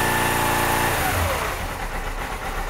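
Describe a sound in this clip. A motorcycle engine cuts off and falls quiet.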